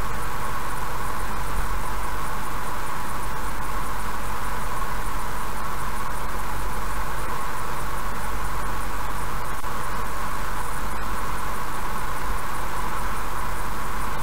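A car drives steadily along a highway, its tyres humming on the road.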